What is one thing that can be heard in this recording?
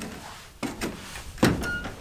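A boot steps onto a metal ladder rung with a knock.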